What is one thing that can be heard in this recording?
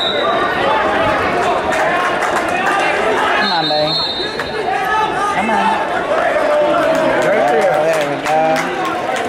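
A crowd of young men and women shouts and cheers loudly in an echoing hall.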